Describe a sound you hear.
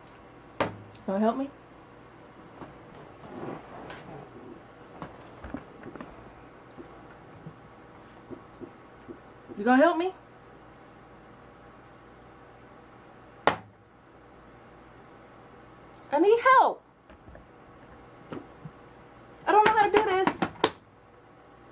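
A young woman speaks close by with animation, in short bursts.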